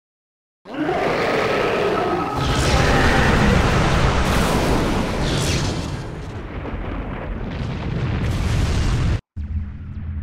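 Loud explosions roar and rumble.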